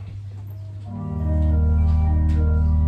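A choir begins singing loudly.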